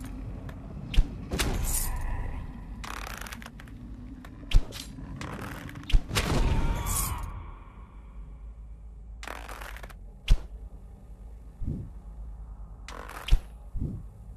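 A crossbow fires with sharp twangs now and then.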